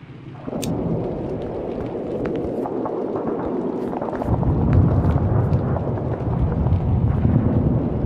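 Strong wind blows and gusts steadily.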